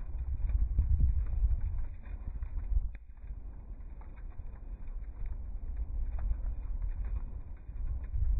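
Wind blows in gusts outdoors, rumbling low.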